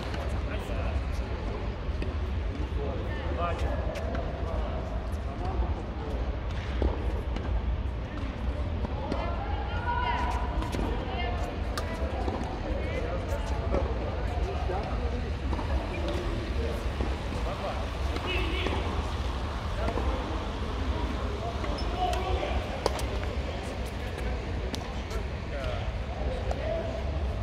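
Paddles strike a ball with sharp hollow pops.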